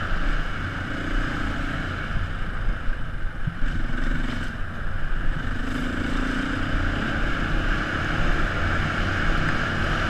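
Tyres rumble and bump over a dirt track.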